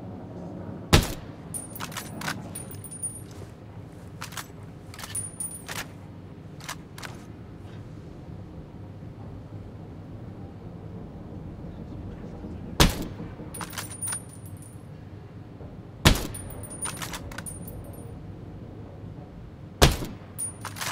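A rifle fires single loud shots, a few seconds apart.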